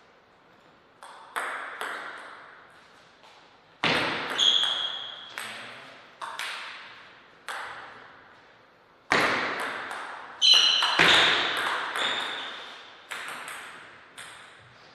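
A table tennis ball clicks sharply against paddles and the table in a quick rally.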